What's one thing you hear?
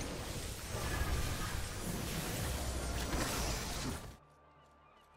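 Battle sounds clash and crackle in a fight.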